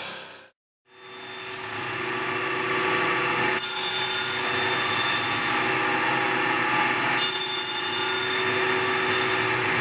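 A table saw runs with a steady whine.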